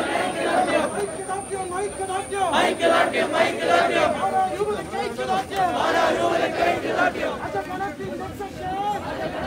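A crowd of men chants slogans loudly outdoors.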